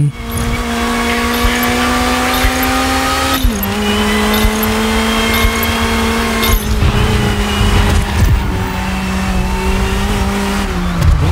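A racing car engine whines at high revs, dropping in pitch with each gear change.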